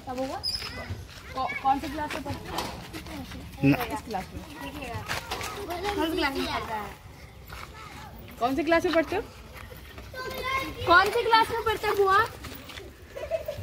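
Children talk and laugh outdoors.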